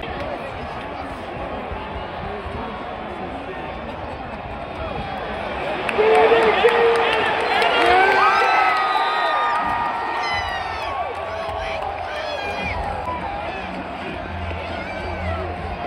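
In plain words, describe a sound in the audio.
A large stadium crowd murmurs steadily outdoors.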